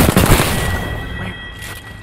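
A gun fires with loud sharp bangs.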